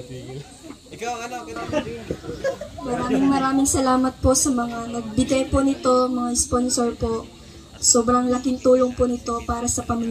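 A young woman speaks through a microphone and loudspeaker, warmly and with feeling.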